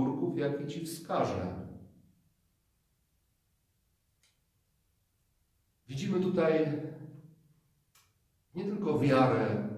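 A middle-aged man speaks calmly and slowly, with pauses between phrases.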